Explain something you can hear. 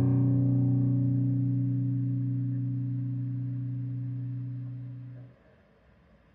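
A loud electric guitar chord rings out and slowly fades in a small room.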